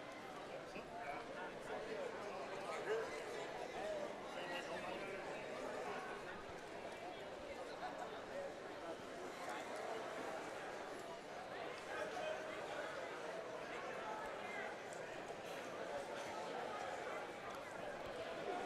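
A small crowd chatters and cheers in a large echoing hall.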